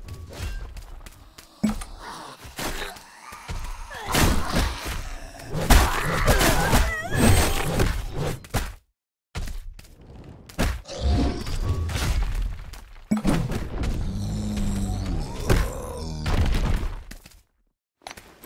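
Blades slash and thud repeatedly in a fight.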